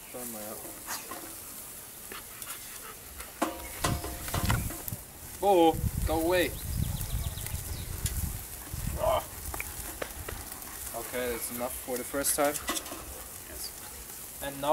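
A young man talks casually nearby outdoors.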